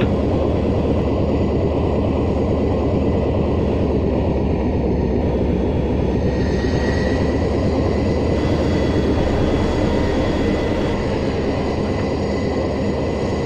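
Propeller engines drone steadily and loudly.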